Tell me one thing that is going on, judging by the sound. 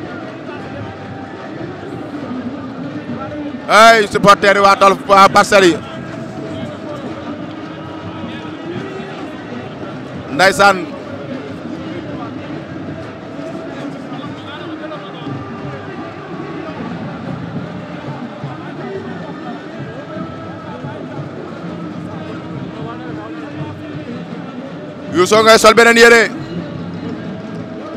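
A large crowd murmurs and chatters steadily in a big open space.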